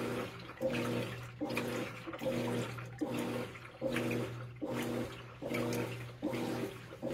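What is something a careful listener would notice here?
A washing machine agitator churns back and forth in a rhythmic cycle, sloshing water.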